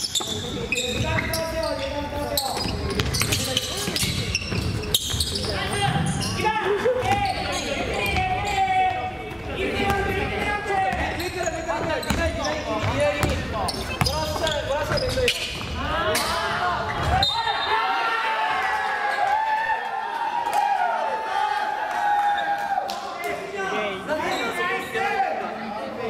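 Young players shout and call out to each other across the court.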